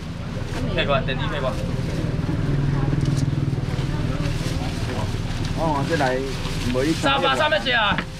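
Men talk loudly nearby.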